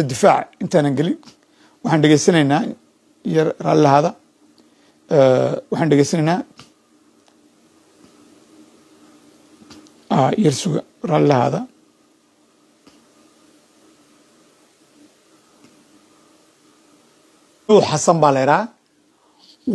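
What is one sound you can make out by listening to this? An elderly man speaks calmly over an online call, pausing between phrases.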